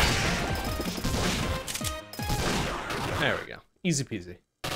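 Video game explosions boom and crackle rapidly.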